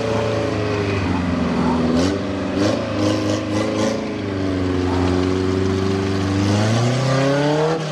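A truck engine revs loudly, rising and falling.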